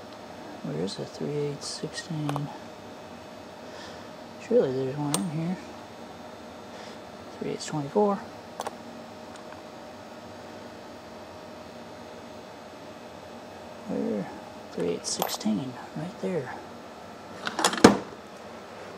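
Metal dies clink against each other.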